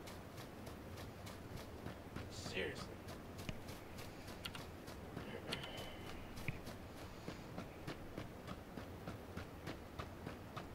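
Quick footsteps run over grass and dirt.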